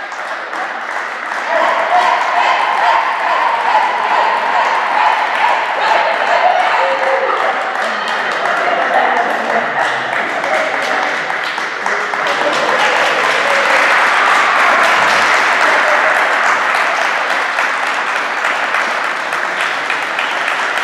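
Young women chatter and call out to each other in a large echoing hall.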